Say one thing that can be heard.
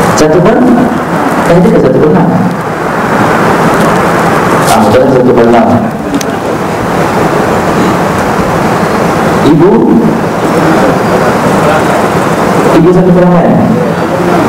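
A young man lectures calmly into a clip-on microphone.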